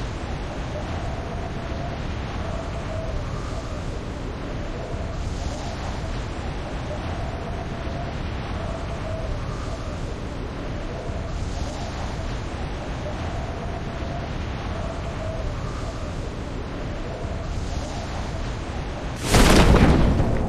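Wind rushes loudly and steadily during a fast fall.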